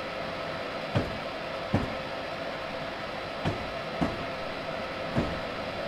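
Train wheels thump over rail joints a few times.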